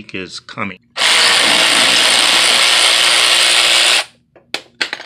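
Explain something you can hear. An impact wrench whirs loudly as it spins a bolt.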